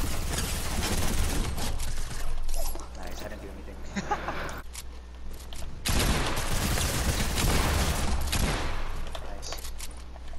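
Guns fire in quick bursts of sharp cracks.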